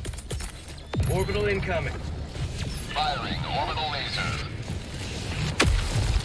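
A laser beam roars with a deep rumble.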